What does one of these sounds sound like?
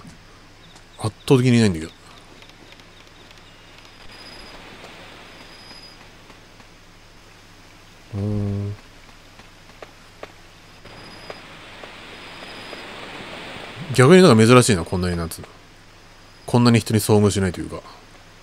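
A child's footsteps patter quickly across the floor and ground.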